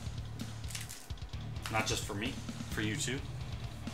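Cardboard packaging rustles in hands.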